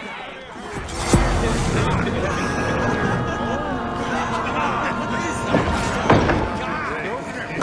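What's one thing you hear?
A chime rings out with a swelling musical tone.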